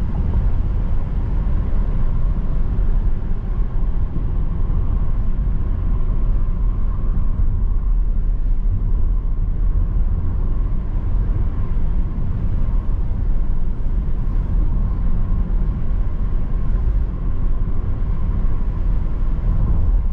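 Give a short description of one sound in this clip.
A wiper swipes across the windscreen.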